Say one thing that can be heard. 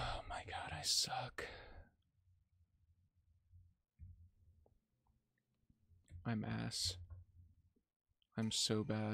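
A young man speaks with animation close to a microphone.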